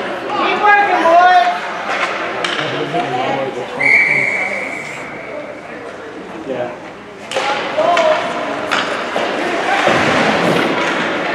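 Spectators talk and call out in a large echoing rink.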